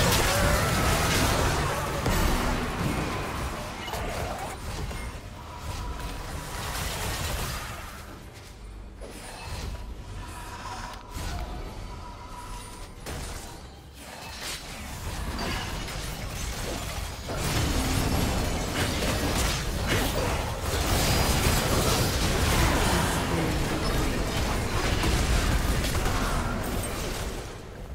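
Game spell effects whoosh, crackle and clash in a fast battle.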